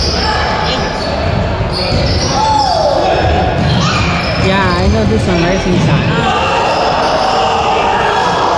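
Spectators chatter and shout in a large echoing gym.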